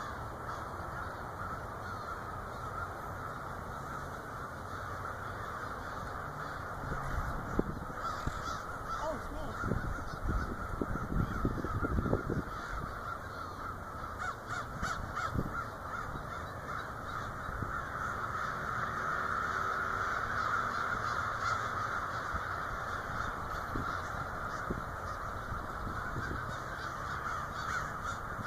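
A large flock of birds chatters and calls noisily outdoors.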